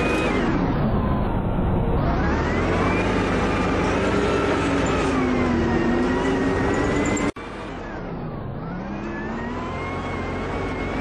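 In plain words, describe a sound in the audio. A diesel bus engine pulls along, its pitch rising and falling.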